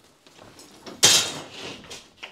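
A drywall sheet snaps with a sharp crack.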